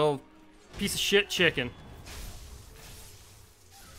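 A blade slashes and strikes with a wet impact.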